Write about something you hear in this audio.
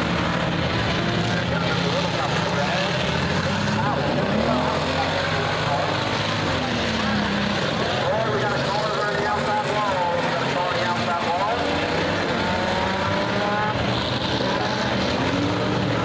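Race car engines roar and whine loudly outdoors.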